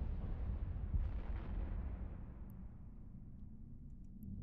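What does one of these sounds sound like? A deep explosion booms and rumbles slowly away.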